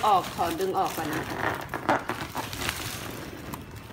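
Plastic wrapping and a woven sack rustle and crinkle as they are handled.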